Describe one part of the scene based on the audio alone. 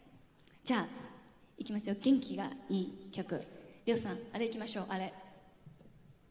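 A young woman speaks warmly into a microphone in a large echoing hall.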